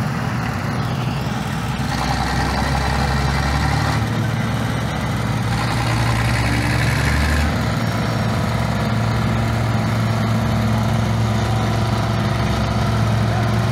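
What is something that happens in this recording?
Small machine engines chug and rumble steadily nearby.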